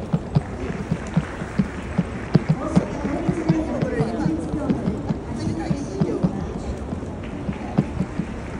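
Footsteps tap steadily on paving close by.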